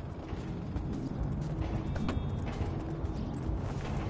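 A van door clicks open.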